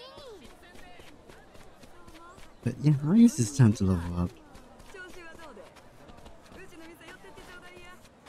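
Footsteps patter quickly on a dirt path.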